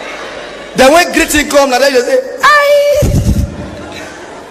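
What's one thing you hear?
A young man sings loudly and excitedly through a microphone.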